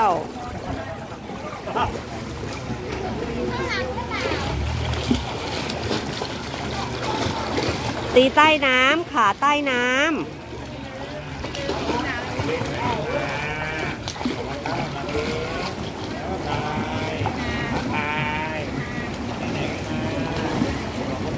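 A young child talks and calls out nearby.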